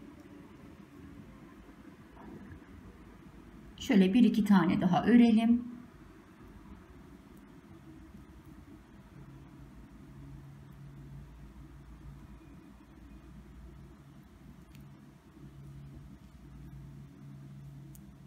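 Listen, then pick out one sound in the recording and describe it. Tiny beads click softly against a needle.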